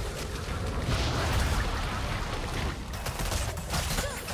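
Magic blasts whoosh and crackle in a video game battle.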